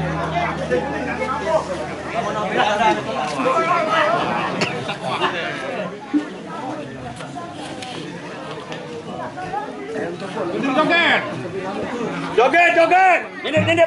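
A crowd of men, women and children chatters outdoors.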